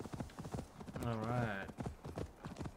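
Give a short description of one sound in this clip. A horse whinnies briefly.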